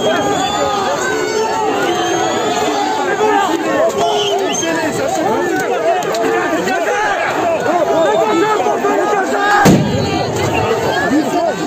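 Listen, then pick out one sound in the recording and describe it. A large crowd shouts and chants loudly outdoors.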